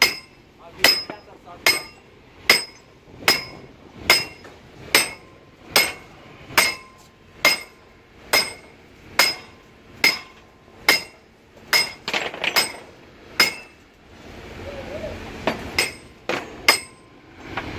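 A hammer strikes metal in a steady, ringing rhythm.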